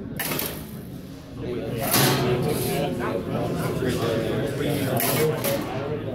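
A sorting machine hums and rattles steadily.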